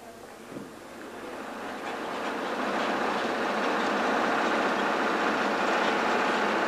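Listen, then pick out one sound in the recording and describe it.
A bus rumbles along with a steady, swelling noise.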